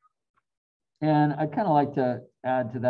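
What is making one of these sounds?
An older man speaks calmly through a computer microphone.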